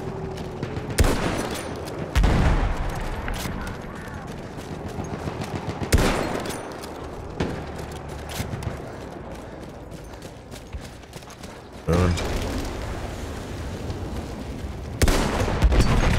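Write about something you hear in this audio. A rifle fires loud single shots that boom and echo.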